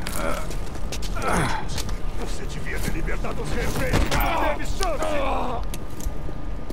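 A man speaks in a low, gruff voice close by.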